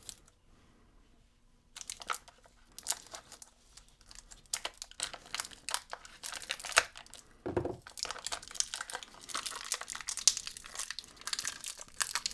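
Scissors snip and scrape against plastic.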